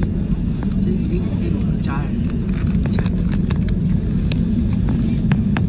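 A jet airliner's engines roar steadily from inside the cabin.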